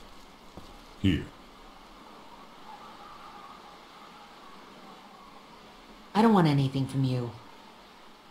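A young woman speaks softly, close up.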